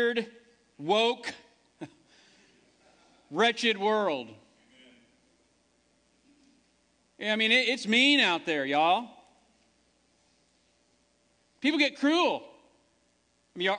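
A man speaks calmly into a microphone, with pauses between phrases.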